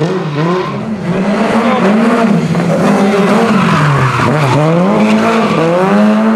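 Tyres squeal on tarmac as a car drifts.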